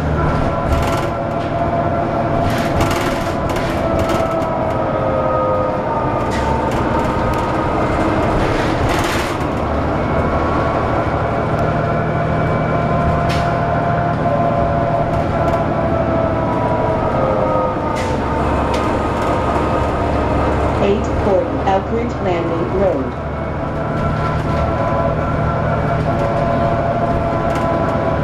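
Loose fittings rattle and clatter inside a moving bus.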